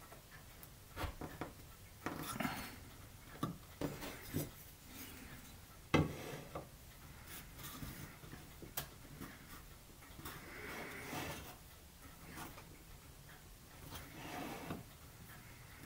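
Light wooden knocks and taps sound as small pieces are set on a workbench.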